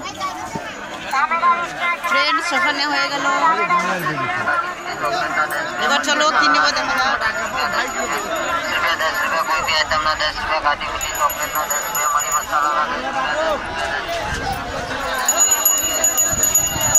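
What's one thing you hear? A woman talks close to the microphone with animation.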